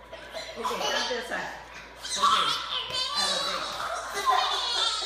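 Young girls shriek and laugh excitedly close by.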